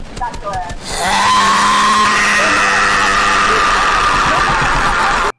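A young man screams at the top of his voice into a microphone.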